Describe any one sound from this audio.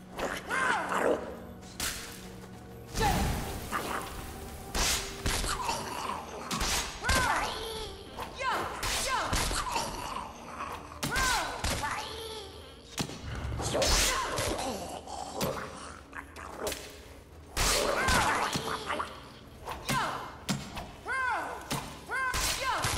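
Metal blades clash and strike in a fast fight.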